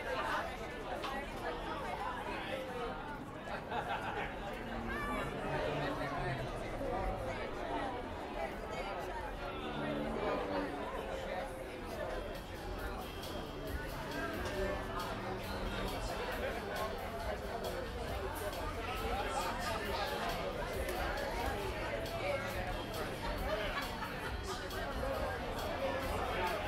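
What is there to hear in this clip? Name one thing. A small band plays live music outdoors.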